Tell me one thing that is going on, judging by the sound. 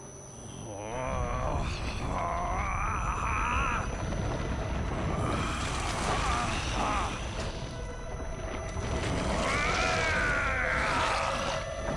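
A man groans and roars in pain.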